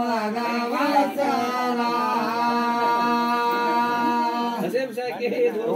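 Men sing loudly together in a long held chant.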